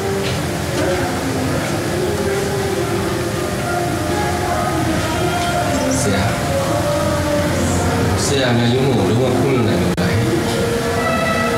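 A young man answers in conversation nearby.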